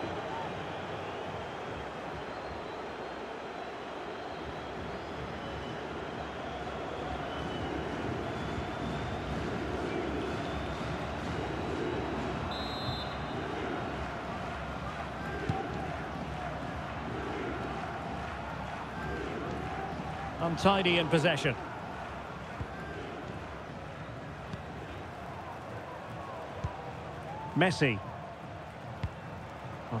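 A large crowd roars and murmurs steadily.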